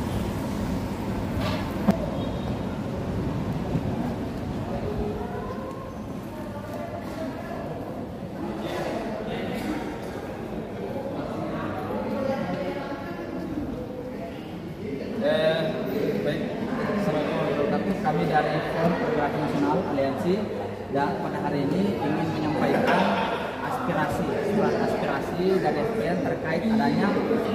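Several people murmur and talk in the background.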